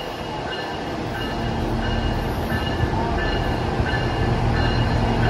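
A train rumbles into the station, growing louder as it approaches.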